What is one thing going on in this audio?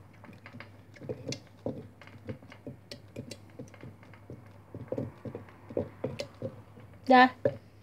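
A wooden pestle knocks and grinds inside a glass jar.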